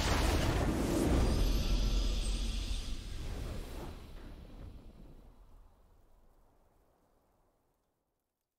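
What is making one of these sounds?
A triumphant fanfare plays and slowly fades away.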